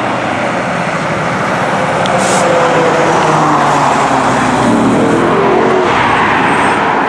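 A fire engine's diesel engine rumbles past close by.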